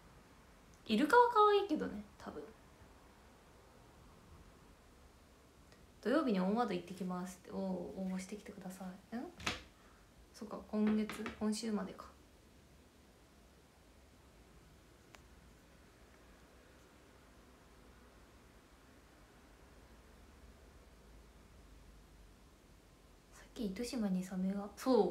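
A young woman talks calmly and softly close to a microphone, in short bursts with pauses.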